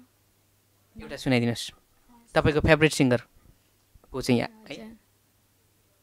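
A young woman speaks calmly into a close microphone.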